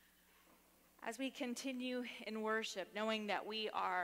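A woman sings through a microphone in a large echoing hall.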